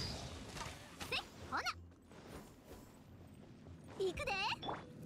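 Electric blasts crackle and zap.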